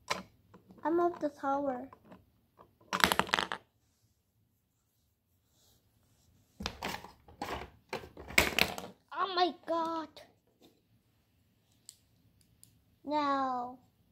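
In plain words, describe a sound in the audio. A young child speaks and squeals in a high voice close by.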